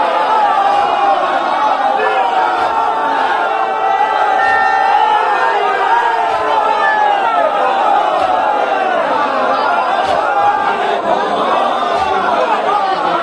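Men clap their hands overhead in rhythm.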